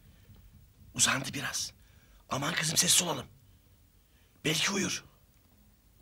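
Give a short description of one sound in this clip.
A middle-aged man shouts angrily, close by.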